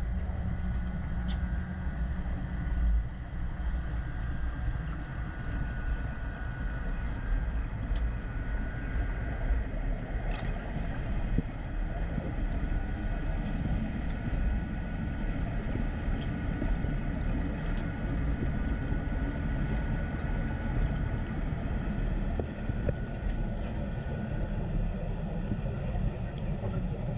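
Muffled underwater rumbling and water noise go on steadily.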